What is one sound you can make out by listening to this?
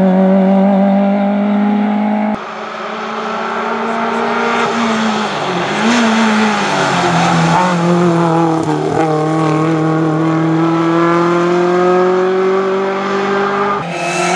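A rally car's engine roars loudly as it races past at speed.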